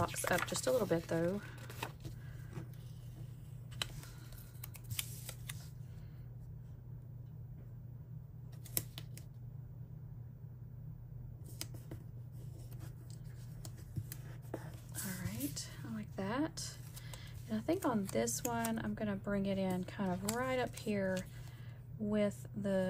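Paper rustles and crinkles softly as stickers are peeled and pressed down.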